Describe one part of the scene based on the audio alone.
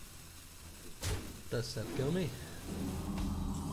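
A magical spell effect bursts with a bright shimmering sound.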